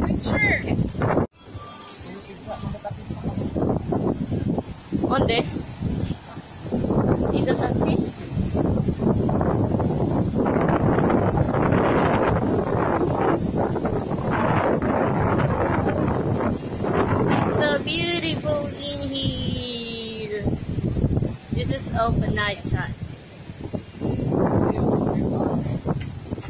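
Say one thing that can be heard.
Wind blows hard into the microphone.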